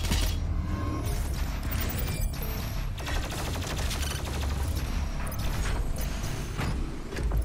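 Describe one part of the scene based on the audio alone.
Heavy gunfire booms in quick bursts.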